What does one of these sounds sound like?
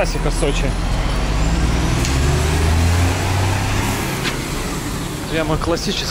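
Traffic noise fills a busy street.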